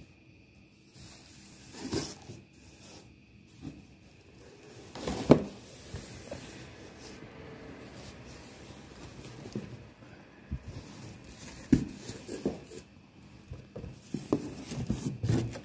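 Cardboard flaps rustle and scrape as a box is opened.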